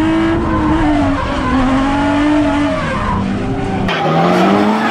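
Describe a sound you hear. A car engine revs hard and drones from inside the car.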